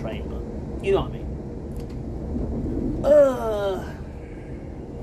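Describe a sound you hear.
A middle-aged man speaks close to the microphone with animation.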